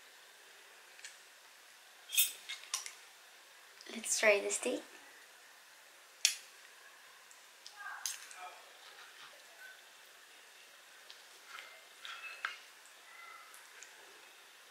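A knife and fork clink and scrape against a wooden board.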